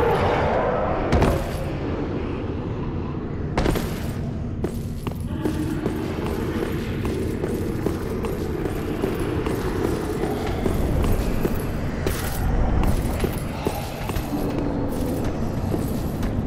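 Armoured footsteps clank over stone.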